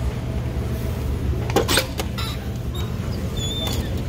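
A metal door bar clunks as a door is pushed open.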